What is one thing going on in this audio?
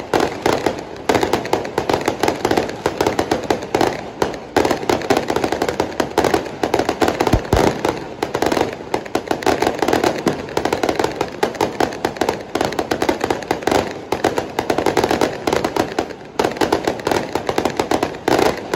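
Fireworks crackle and bang rapidly overhead in the open air.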